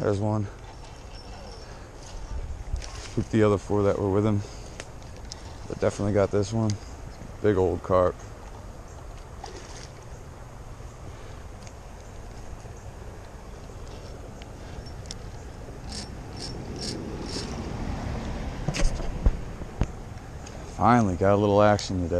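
A fishing reel whirs and clicks as its handle is turned.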